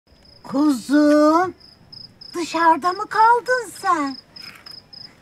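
A woman calls out in a high, drawn-out voice close by.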